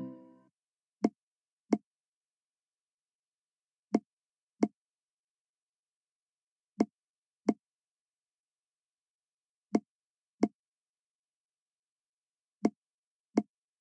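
Short soft pops sound in pairs as game balls lift and drop into place.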